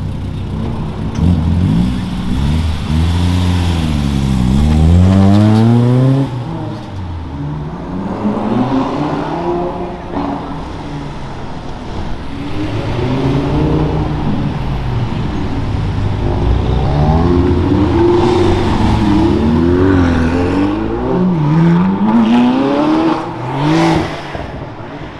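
A sports car engine revs loudly and roars up and down close by.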